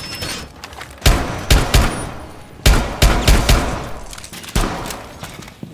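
Gunshots crack loudly and echo in quick bursts.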